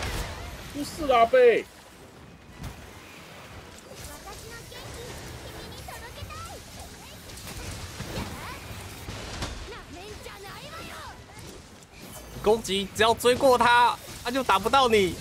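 Blades strike a huge beast with sharp, rapid hits.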